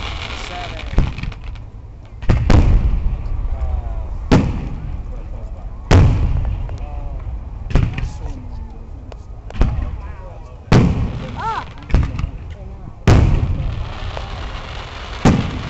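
Fireworks burst with loud booms that echo and rumble away.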